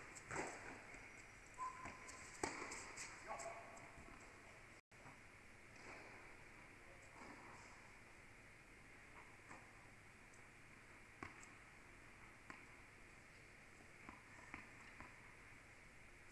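A tennis ball is struck with a racket, echoing in a large hall.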